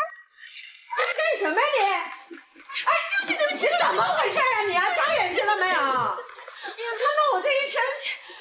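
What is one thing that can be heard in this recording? A woman shouts angrily at someone.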